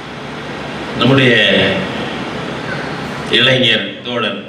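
An elderly man speaks loudly into a microphone over a loudspeaker.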